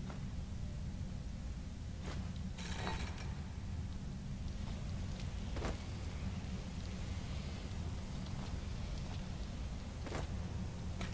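A magic spell hums and crackles steadily.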